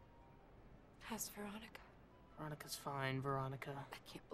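A young woman speaks up close in a pleading, upset voice.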